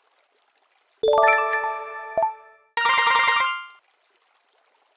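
A bright chiming jingle plays for a level reward.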